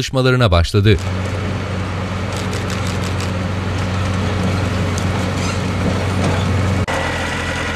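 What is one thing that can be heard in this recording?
A heavy diesel engine rumbles steadily up close.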